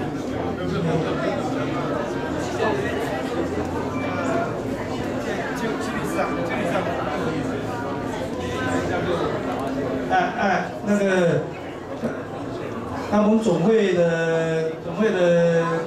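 A man speaks through a microphone and loudspeakers in a large echoing room.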